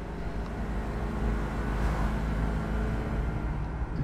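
A vehicle engine roars as it drives through a tunnel.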